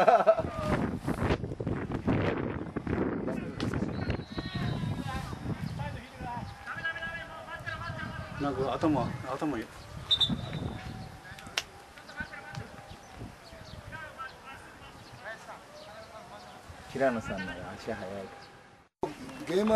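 Several men call out across an open field.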